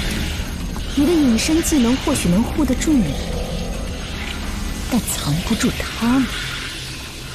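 A young woman speaks calmly and firmly.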